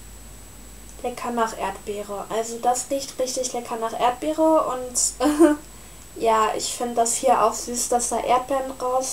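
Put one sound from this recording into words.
A young woman talks animatedly close to the microphone.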